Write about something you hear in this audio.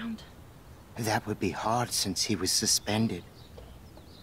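A middle-aged man answers in a low, weary voice, close by.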